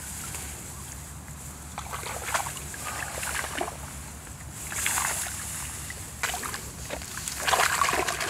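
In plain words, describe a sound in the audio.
Plants rustle as hands brush through them.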